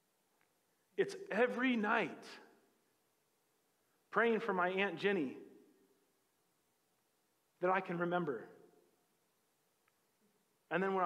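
A man speaks emphatically through a microphone, in short bursts with pauses.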